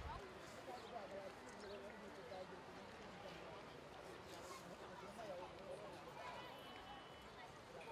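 Men talk together outdoors, some distance away.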